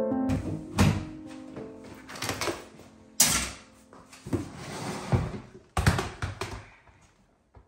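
Plastic knocks and clatters close by.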